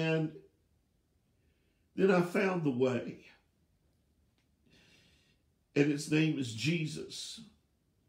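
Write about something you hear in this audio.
An elderly man speaks calmly in short phrases, close to the microphone.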